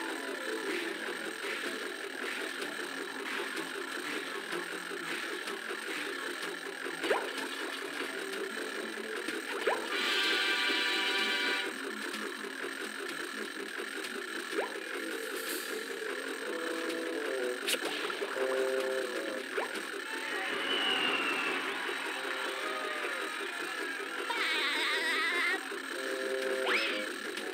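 Upbeat game music plays steadily.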